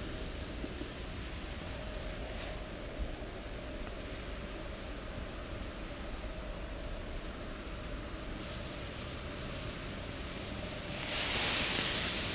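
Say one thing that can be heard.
Hands rub softly over skin.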